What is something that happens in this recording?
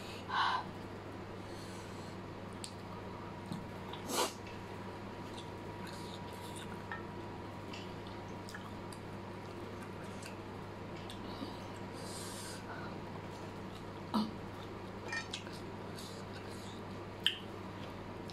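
Chopsticks click against a plate.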